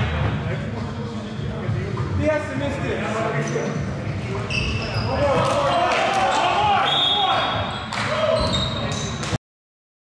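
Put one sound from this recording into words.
Young men call out to each other across an echoing gym.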